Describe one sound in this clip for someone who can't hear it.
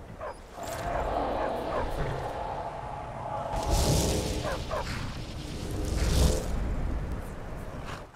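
A magic spell crackles and whooshes loudly.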